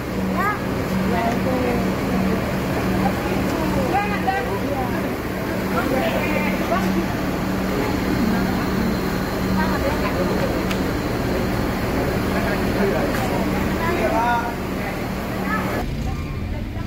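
A bus engine idles steadily nearby.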